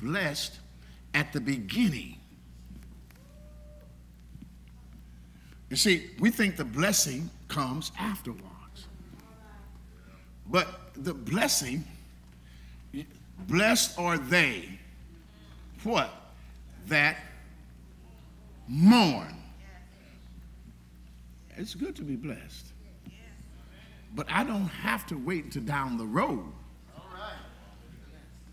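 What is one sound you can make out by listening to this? An elderly man preaches with animation through a microphone, with long pauses between phrases.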